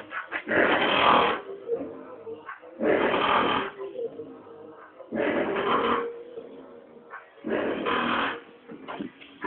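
A car engine revs up in short, repeated bursts close by.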